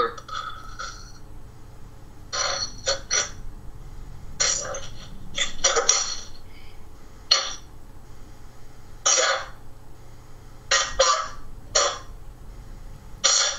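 A man talks in short bursts over an online call.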